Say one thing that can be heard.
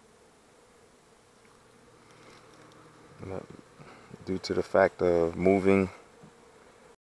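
Bees buzz softly and steadily close by.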